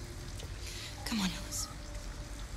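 A young woman speaks softly and coaxingly.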